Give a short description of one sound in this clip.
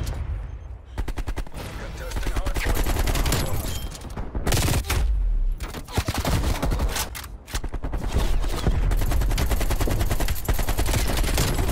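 Rapid bursts of gunfire crack loudly.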